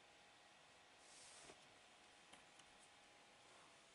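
Puzzle pieces slide and click softly on a tabletop.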